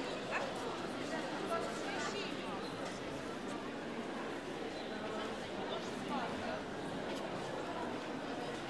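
A crowd of men and women chatters steadily in a large echoing hall.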